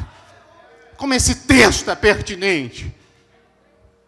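A man speaks with animation into a microphone over loudspeakers in an echoing hall.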